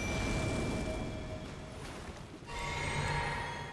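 A magical shimmer chimes and sparkles.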